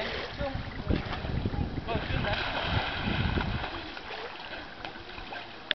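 Water splashes as a child swims in a pool.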